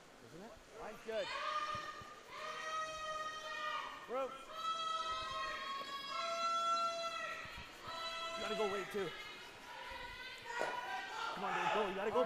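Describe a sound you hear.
Men call out long, drawn-out shouts.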